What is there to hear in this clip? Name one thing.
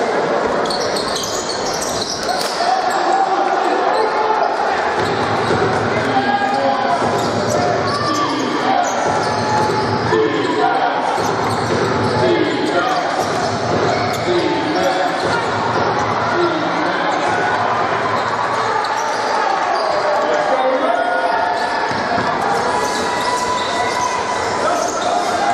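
A large crowd cheers and chatters in an echoing indoor hall.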